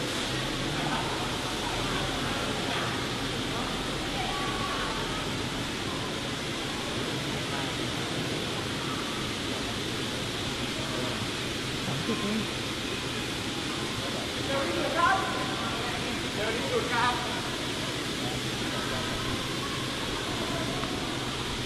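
A crowd chatters and murmurs, echoing in a large hall.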